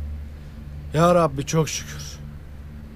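A young man speaks a short phrase with relief.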